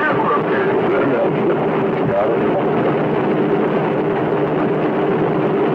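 A rocket engine roars steadily far off.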